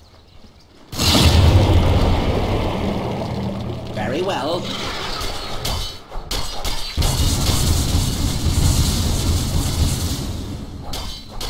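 Loud game battle effects crash and clash.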